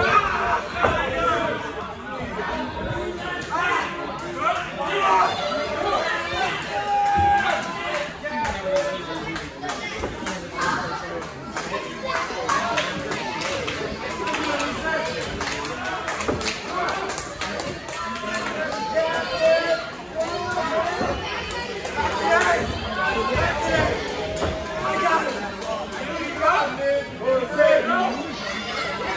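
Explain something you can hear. Wrestlers thud onto the ring mat.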